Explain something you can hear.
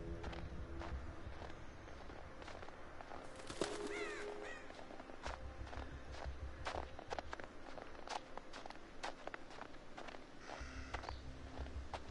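Footsteps crunch slowly on a forest path.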